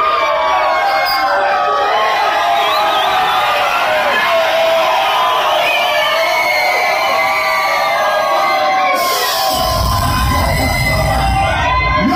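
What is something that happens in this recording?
A man raps into a microphone over loud music.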